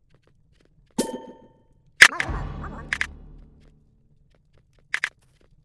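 Game menu sounds click and chime.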